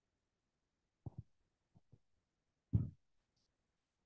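A middle-aged woman speaks briefly into a handheld microphone.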